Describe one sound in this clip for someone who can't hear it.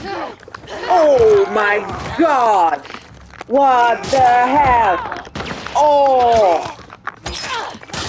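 A man screams in pain close by.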